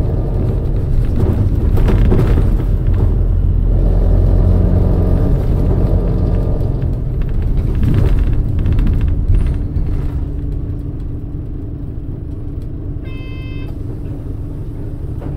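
A bus engine idles with a low, steady rumble close by.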